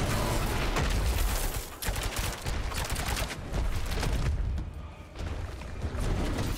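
Magic blasts whoosh and boom in quick bursts.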